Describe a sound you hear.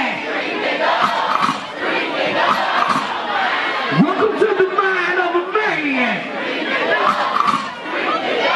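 A man raps loudly into a microphone over a loudspeaker.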